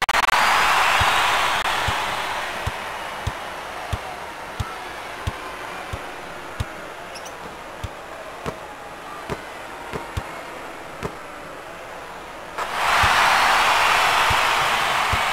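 A basketball bounces steadily on a hardwood floor.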